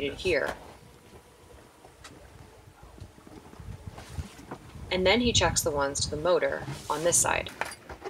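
Water rushes and splashes past a sailing boat's hull.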